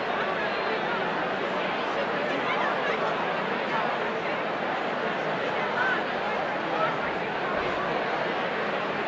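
A large crowd chatters and murmurs in a big echoing hall.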